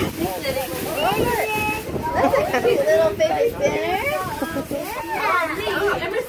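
Young children chatter excitedly.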